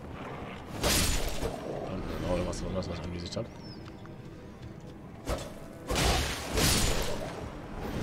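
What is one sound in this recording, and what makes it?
Sword blows clang and thud.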